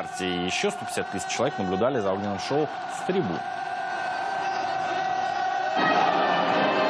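A crowd of young people cheers and shouts.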